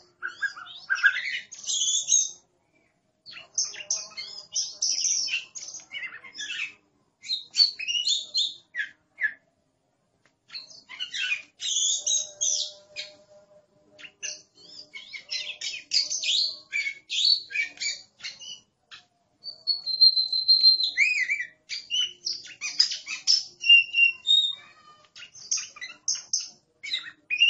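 A songbird sings loud, varied whistling phrases in bursts with short pauses.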